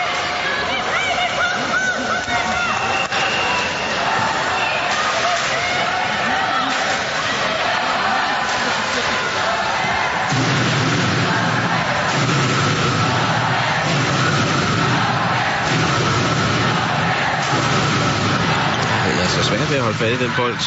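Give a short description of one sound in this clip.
A large crowd cheers and chants in an echoing arena.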